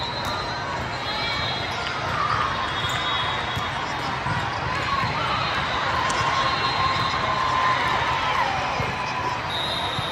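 A volleyball thumps off players' arms.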